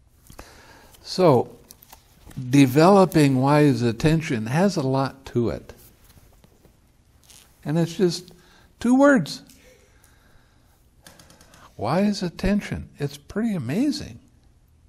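An elderly man speaks calmly and warmly into a microphone, with pauses.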